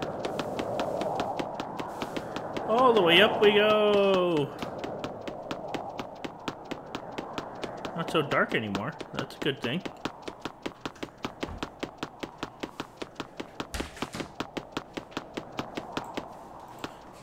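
Quick light footsteps patter up stone stairs.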